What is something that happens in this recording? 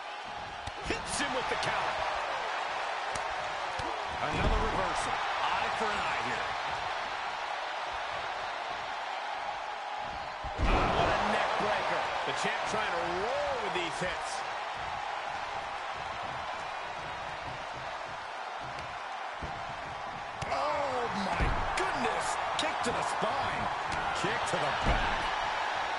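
Heavy thuds ring out as wrestlers slam onto the mat.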